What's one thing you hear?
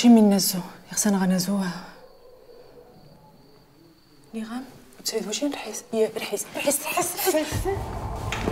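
A young woman speaks in a hushed, urgent voice close by.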